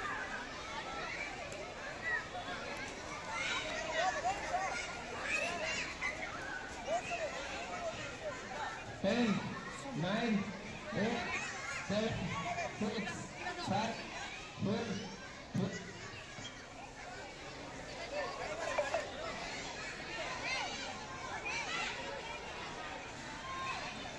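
A crowd of teenage boys shouts and calls out outdoors.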